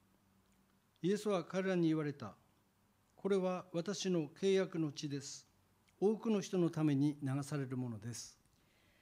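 An elderly man speaks calmly into a microphone, heard through loudspeakers.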